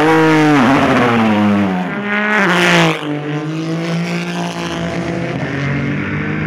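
A race car engine roars loudly, with pitch dropping and rising as it shifts gears.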